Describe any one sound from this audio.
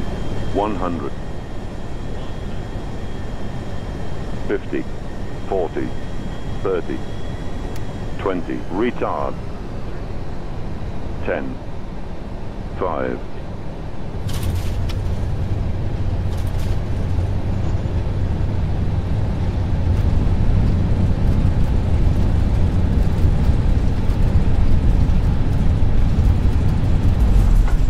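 Jet engines hum steadily.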